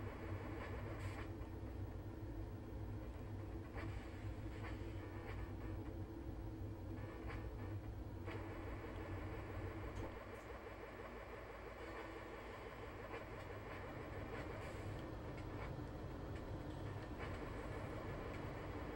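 Retro video game music plays steadily.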